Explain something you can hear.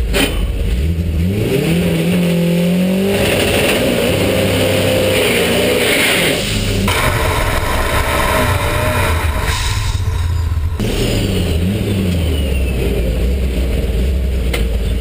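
A race car engine revs hard, its roar rising and falling in pitch.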